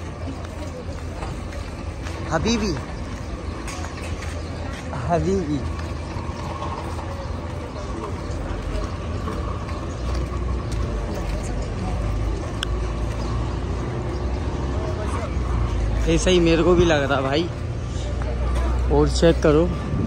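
Men and women chatter quietly in a crowd outdoors.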